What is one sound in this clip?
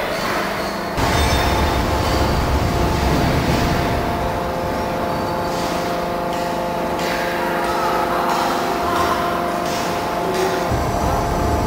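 Steam locomotives rumble steadily in a large echoing shed.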